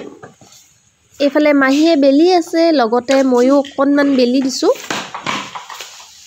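A rolling pin thumps and rolls on a wooden board.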